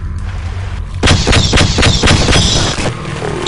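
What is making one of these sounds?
A gun fires a quick burst of shots.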